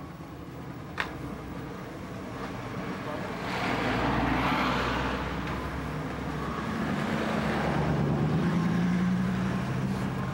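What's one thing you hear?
Hands rummage and shuffle about inside a car.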